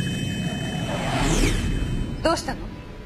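An aircraft engine roars overhead.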